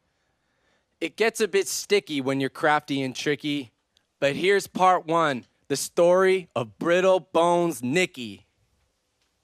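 A young man sings loudly into a microphone.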